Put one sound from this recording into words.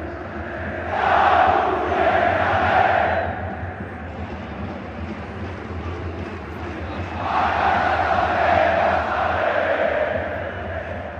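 A large crowd roars and cheers in surges.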